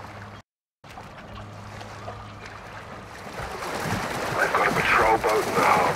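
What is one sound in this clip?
Water laps and splashes at the surface.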